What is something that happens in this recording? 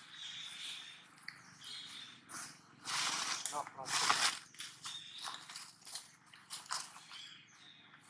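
A monkey softly parts and rustles another monkey's fur up close.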